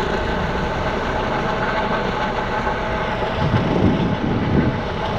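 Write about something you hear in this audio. A helicopter's rotor thrums steadily overhead.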